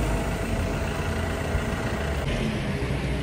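A loader engine rumbles as its bucket tips manure.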